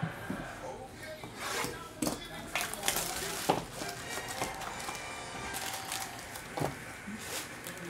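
Plastic wrapping crinkles and rustles as it is torn open.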